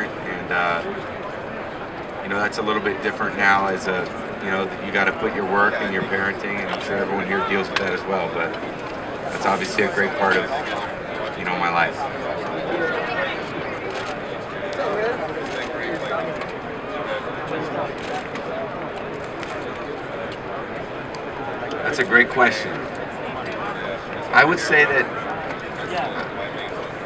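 A young man speaks calmly into microphones.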